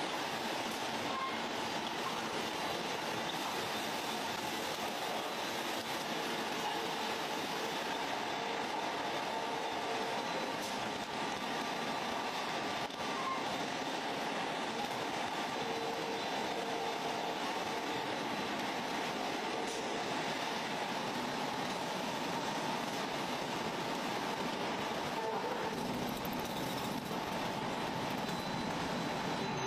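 Factory machinery hums and clatters steadily.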